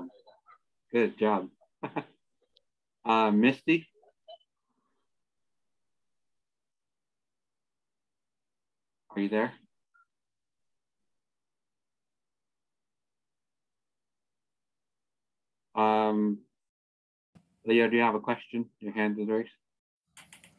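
A man speaks calmly through an online call, with long pauses.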